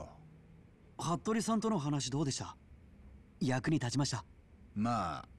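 A young man speaks inquisitively.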